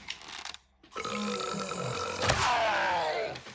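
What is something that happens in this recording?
A wooden bow creaks as its string is drawn back.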